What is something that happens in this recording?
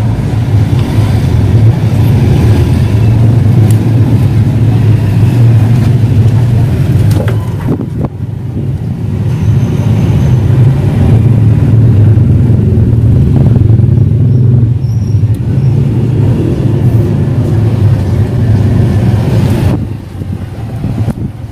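An engine idles close by with a steady low rumble.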